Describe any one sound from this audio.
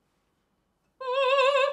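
A young woman hums a wavering, trilling note.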